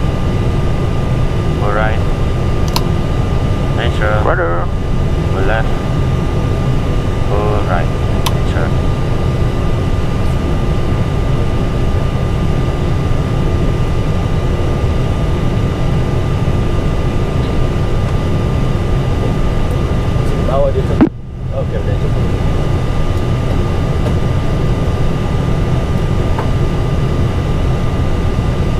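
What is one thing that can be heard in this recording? A steady low hum of aircraft engines and air fills the cockpit.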